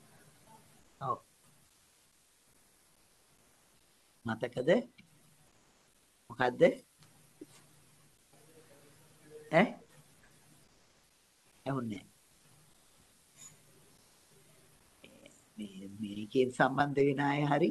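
An elderly man speaks in short, brief phrases over an online call.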